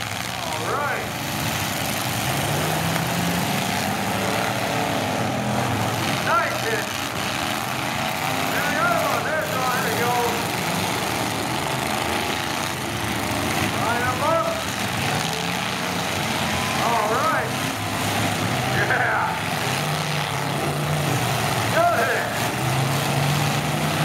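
Car engines rev and roar throughout.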